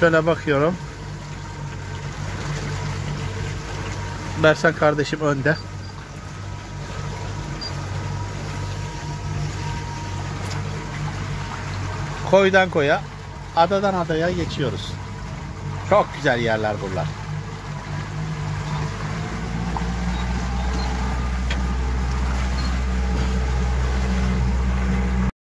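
Water swishes against a moving boat's hull.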